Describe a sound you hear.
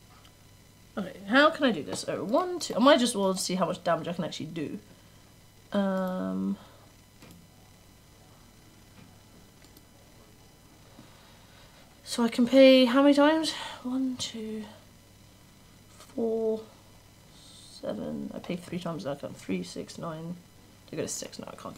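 A young woman talks casually and with animation into a close microphone.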